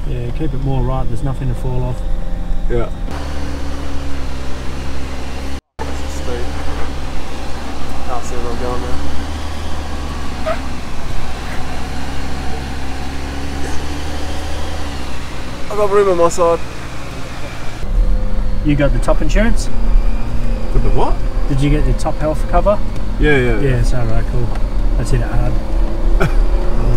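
A man talks casually nearby inside a vehicle.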